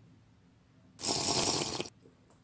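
A young man slurps a drink loudly.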